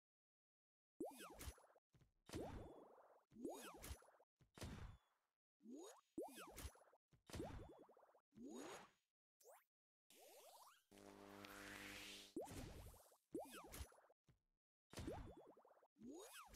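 Game blocks pop and burst with bright chiming effects.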